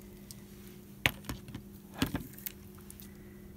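Paint bottles clack on a tabletop.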